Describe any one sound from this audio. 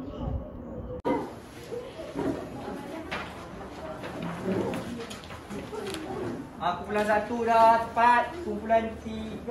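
Schoolgirls chatter in a busy room.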